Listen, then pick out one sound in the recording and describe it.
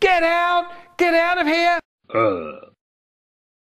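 A cartoon dog speaks in a high, squeaky voice.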